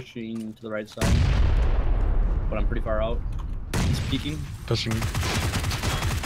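A rifle fires rapid shots close by.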